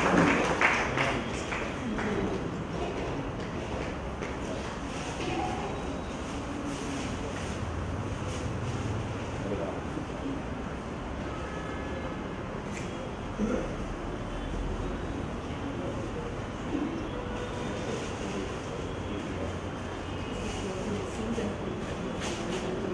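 A man speaks calmly into a microphone, heard through a loudspeaker in an echoing hall.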